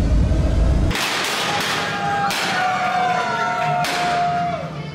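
Confetti cannons pop with sharp bursts.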